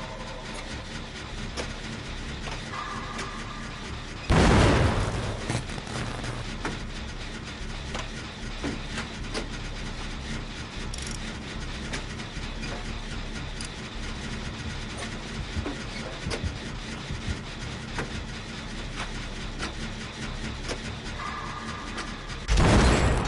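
A machine rattles and clanks steadily.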